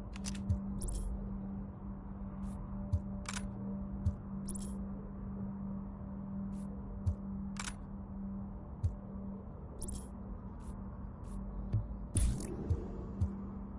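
Short electronic menu clicks and chimes sound now and then.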